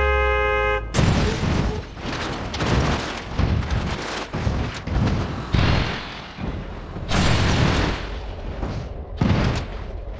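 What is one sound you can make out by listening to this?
A bus crashes and tumbles with loud metal crunches and bangs.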